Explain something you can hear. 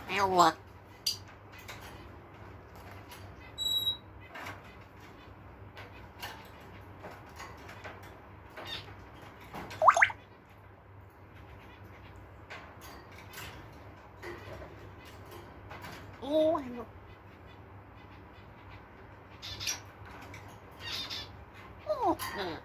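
A parrot whistles and squawks close by.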